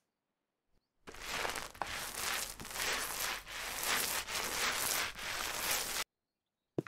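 A paint roller rolls wetly across a wall with a steady swishing.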